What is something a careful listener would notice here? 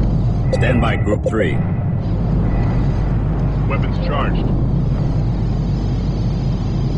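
Spaceship engines hum with a low, steady rumble.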